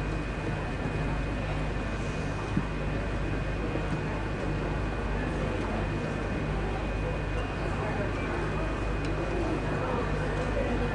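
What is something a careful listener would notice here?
A crowd of men murmurs nearby.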